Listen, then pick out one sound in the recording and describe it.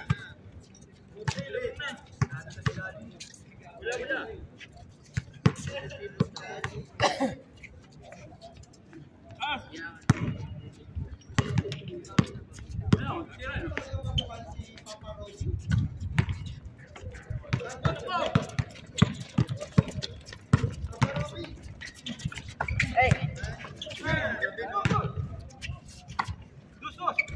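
Young men shout to each other while playing outdoors.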